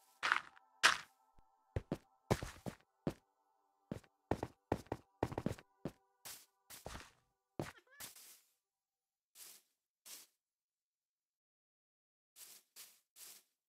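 Footsteps thud on dirt and grass in short bursts.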